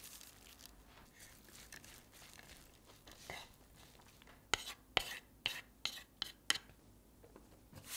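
Chopsticks toss greens in a wooden bowl with soft clicks.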